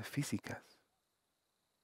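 A man speaks close by.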